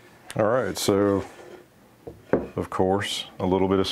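A wooden board knocks down onto a workbench.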